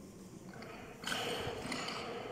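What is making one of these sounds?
Weight plates on a barbell rattle as it is lifted in a large echoing hall.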